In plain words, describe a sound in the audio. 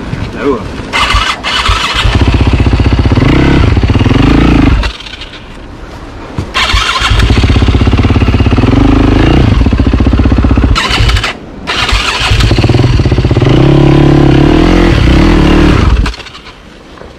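A motorcycle engine revs hard in loud bursts, close by.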